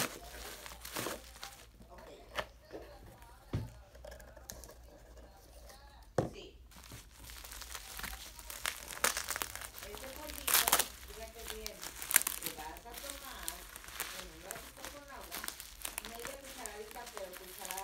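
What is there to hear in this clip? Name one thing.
Bubble wrap crinkles and rustles between hands.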